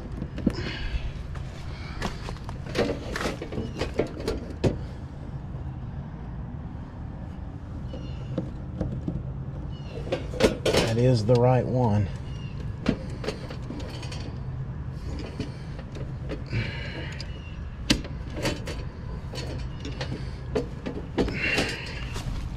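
A metal box cover rattles and clicks as hands handle it.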